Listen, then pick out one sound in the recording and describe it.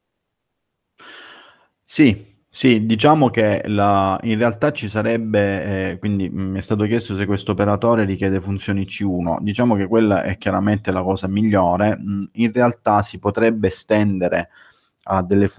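A man speaks calmly into a close microphone, as if over an online call.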